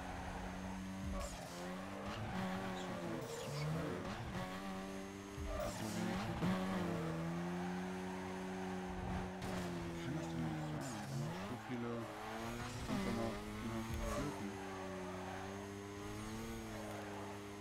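Car tyres screech as they slide sideways on asphalt.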